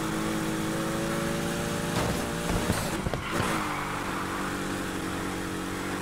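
A sports car engine roars at high revs.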